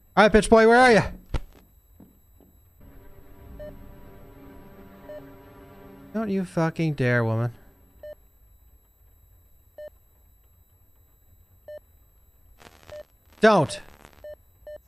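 A young man speaks with animation into a microphone, close up.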